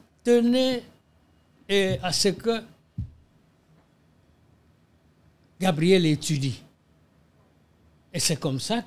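An elderly man speaks calmly and expressively into a close microphone, in short bursts with pauses.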